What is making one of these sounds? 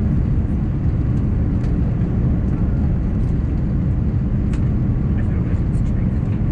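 An airliner's wheels rumble along a runway.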